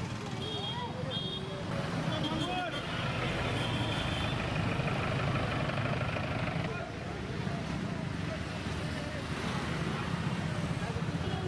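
Motorcycle engines hum as they pass close by.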